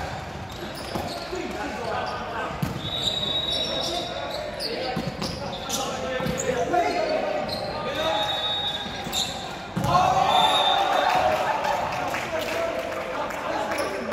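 A volleyball is struck with hard slaps.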